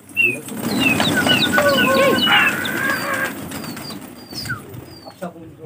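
Pigeons coo and chirp nearby.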